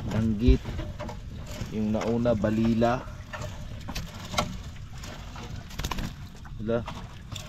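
Fish flap and thump against a net.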